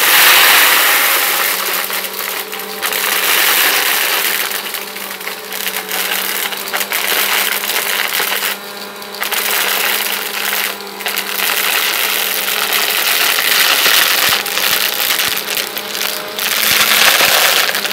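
Small pellets rattle as a vacuum cleaner sucks them up.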